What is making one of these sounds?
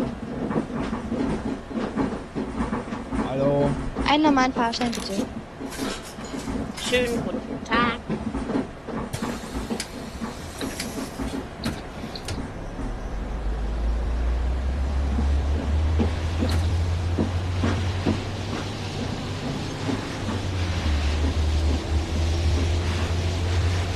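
A bus engine hums low and swells into a deeper rumble as the bus pulls away.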